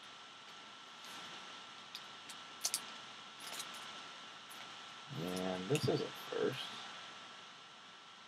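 Trading cards rustle and click as hands shuffle them.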